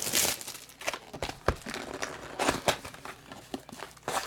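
A cardboard box lid is pulled open.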